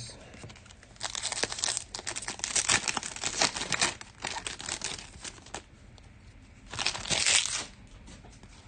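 A foil wrapper crinkles and tears open.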